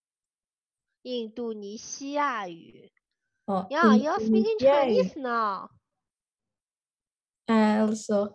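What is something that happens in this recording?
A woman speaks clearly and calmly, heard over an online call.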